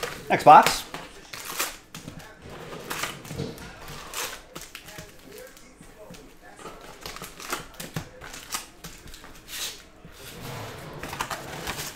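Cardboard packs rustle and tap as hands pull them from a box.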